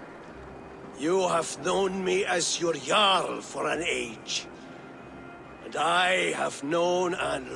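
A man calls out loudly to a crowd outdoors.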